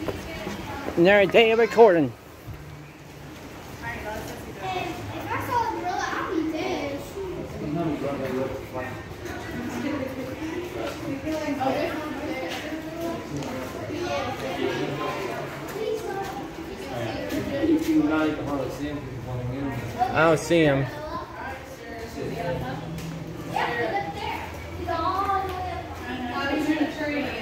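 People chatter nearby.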